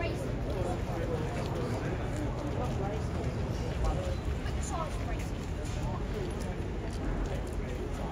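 Footsteps shuffle on paving stones.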